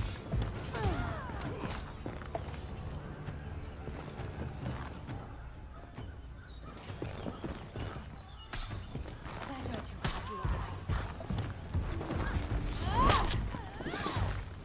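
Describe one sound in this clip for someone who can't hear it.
Heavy armoured footsteps thud across stone and wooden planks.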